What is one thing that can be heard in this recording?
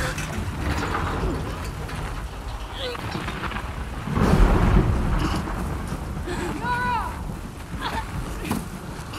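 A young woman grunts and groans with strain.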